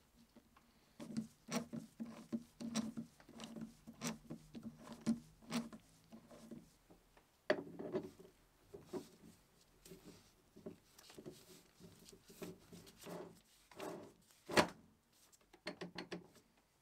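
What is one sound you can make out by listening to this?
A heavy metal chuck clinks and clunks as it is handled and fitted onto a lathe.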